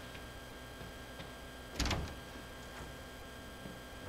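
A wooden door opens with a knock.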